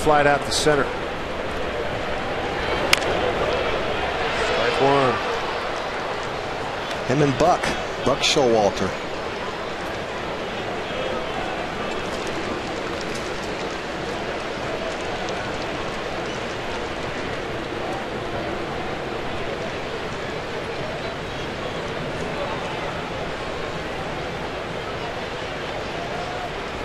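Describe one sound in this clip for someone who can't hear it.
A large stadium crowd murmurs steadily in the background.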